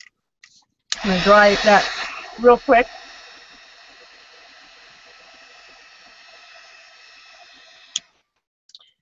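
A heat gun blows with a steady whirring hum.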